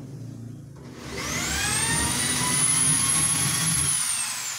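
An electric drill whirs and spins up to a high whine.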